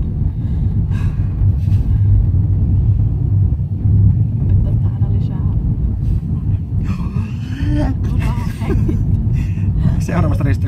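A car engine hums steadily with road rumble inside the cabin.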